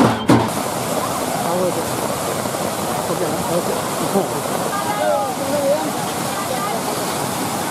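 A crowd of men and women shout and cheer outdoors.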